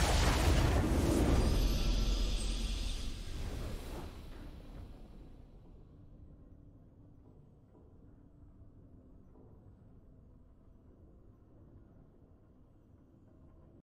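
A triumphant fanfare plays, then fades away.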